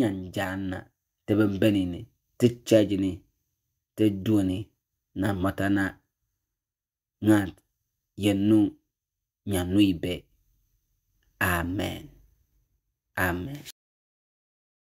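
A man speaks calmly into a microphone, as if preaching, with pauses between phrases.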